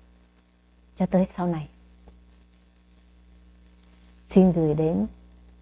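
A middle-aged woman speaks warmly and close to a microphone, in two short phrases.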